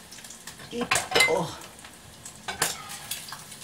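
A plate clinks against a surface.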